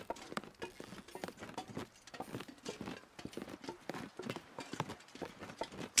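Footsteps thud on hollow wooden boards.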